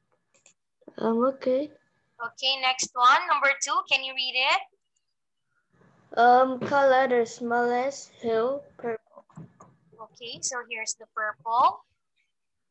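A young woman speaks clearly and calmly through a microphone on an online call.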